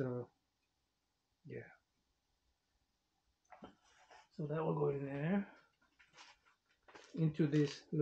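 Paper rustles as a sleeve is handled.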